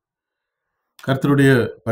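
A middle-aged man speaks close to a microphone.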